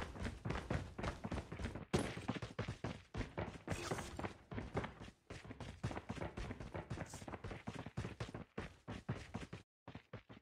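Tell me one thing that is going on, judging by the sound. Footsteps thud quickly on dry ground.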